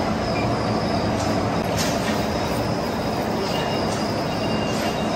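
A vertical lathe runs with a steady hum.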